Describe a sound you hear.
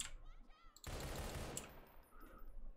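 A rifle fires a short burst.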